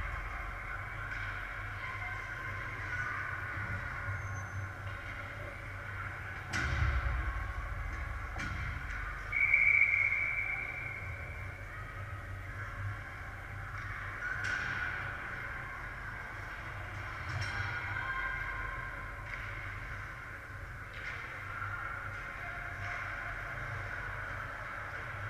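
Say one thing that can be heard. Ice skates scrape and carve across the ice in a large echoing hall.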